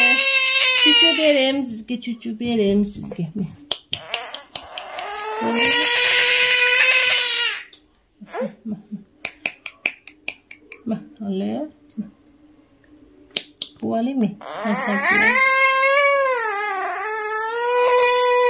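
A baby cries loudly and wails close by.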